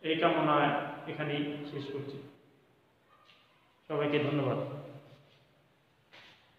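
A man speaks calmly and clearly to a nearby microphone.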